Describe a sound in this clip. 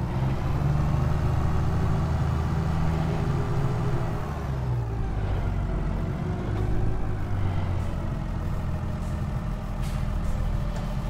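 A tractor engine hums steadily, then drops in pitch as it slows down.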